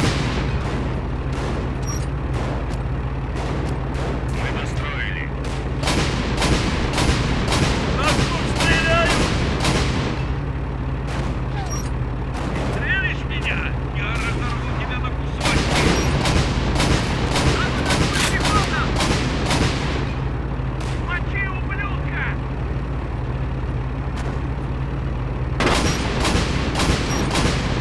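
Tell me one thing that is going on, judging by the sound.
An anti-aircraft gun fires rapid bursts of shots.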